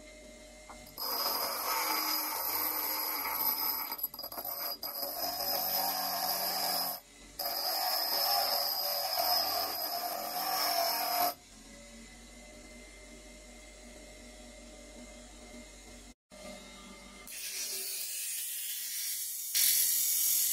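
A bench grinder whines as metal is ground against its stone.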